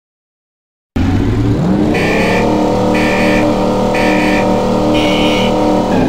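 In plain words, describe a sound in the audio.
Car engines idle and rev loudly.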